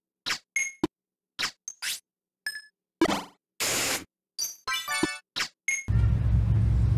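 Electronic game chimes and whooshes play from a tablet.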